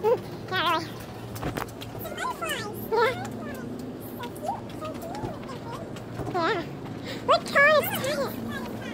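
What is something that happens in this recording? Footsteps in sneakers tap softly on concrete pavement.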